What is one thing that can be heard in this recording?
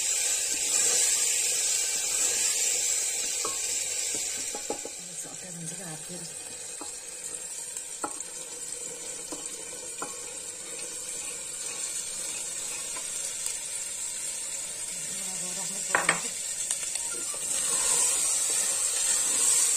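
A wooden spoon scrapes and stirs in a pot.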